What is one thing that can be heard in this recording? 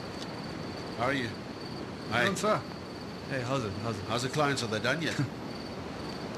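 A man speaks nearby in a calm voice.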